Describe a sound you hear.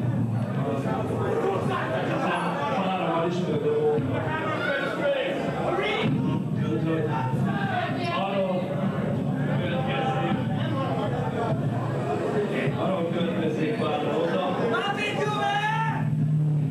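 Drums pound steadily.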